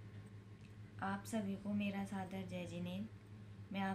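A young woman speaks calmly and close by.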